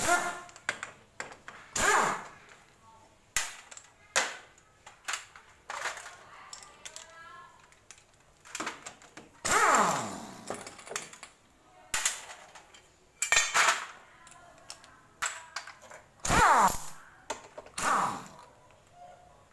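An air impact wrench whirs and rattles in short bursts.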